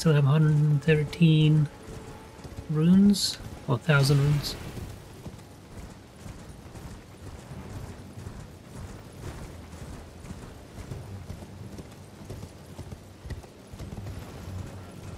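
A horse gallops, its hooves thudding on soft ground.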